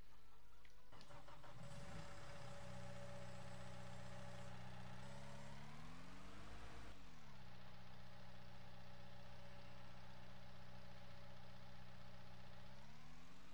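A loader's diesel engine starts up and idles steadily.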